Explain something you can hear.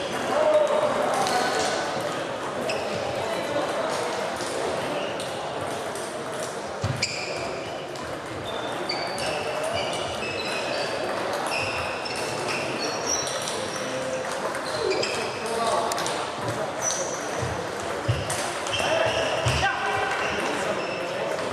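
A table tennis ball clicks back and forth between paddles and table in a large echoing hall.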